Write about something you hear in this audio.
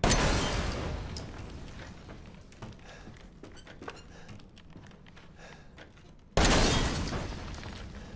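A pistol fires twice, each shot booming and echoing in a hollow space.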